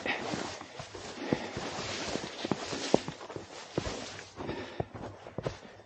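Snowy branches brush and rustle against a jacket.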